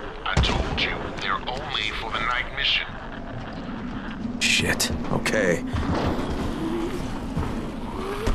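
Footsteps thud and clatter on a metal roof.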